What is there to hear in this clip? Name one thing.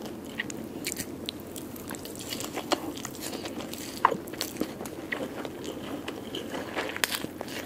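A young woman chews and smacks wetly, close to a microphone.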